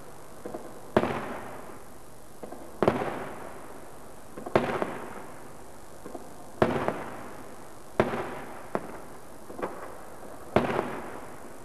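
Fireworks burst with loud booms that echo and rumble away.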